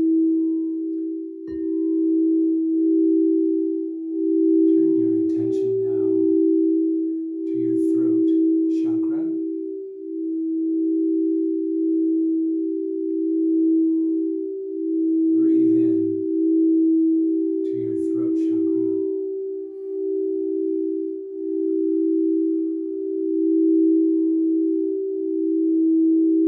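Singing bowls ring with a steady, overlapping hum.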